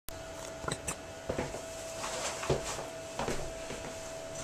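Fabric rustles and thumps as a man moves about close by.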